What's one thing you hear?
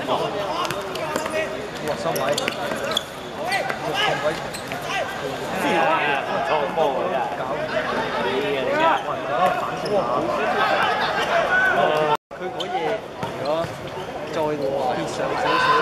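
Many young men shout and call out across an open outdoor space.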